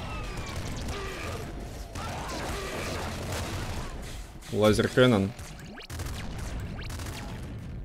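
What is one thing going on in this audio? Video game explosions boom.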